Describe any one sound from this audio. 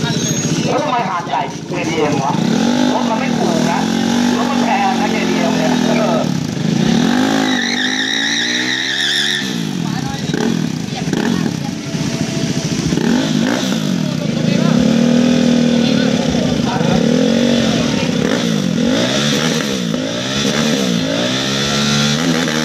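A motorcycle engine revs loudly and repeatedly, rising and falling.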